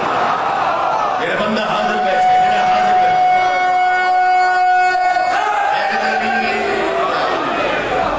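A large crowd of men chants along in unison.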